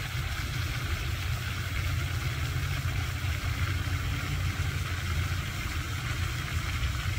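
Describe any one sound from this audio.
A fountain sprays and splashes steadily into a pond.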